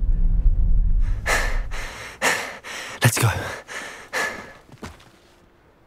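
A young man speaks in surprise.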